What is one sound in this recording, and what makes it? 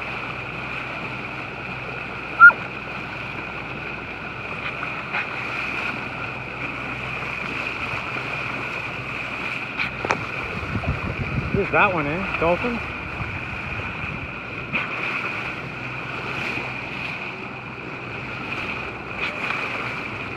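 Dolphins splash as they surface beside a boat.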